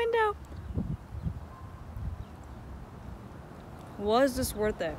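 A young woman chews food close to the microphone.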